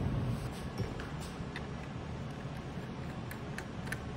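A screwdriver turns screws in a computer.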